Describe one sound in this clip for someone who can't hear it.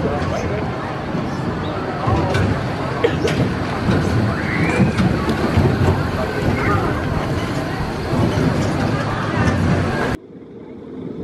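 A roller coaster train rumbles and rattles along its track.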